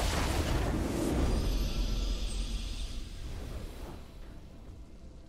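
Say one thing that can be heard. A game victory fanfare swells and fades.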